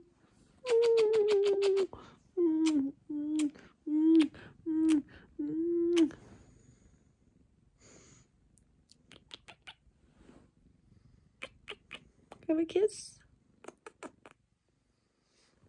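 A young woman makes kissing sounds close by.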